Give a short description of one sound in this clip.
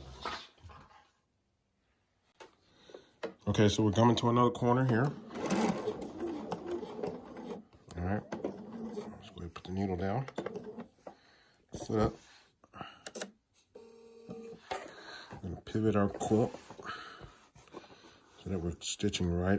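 A sewing machine stitches in short bursts.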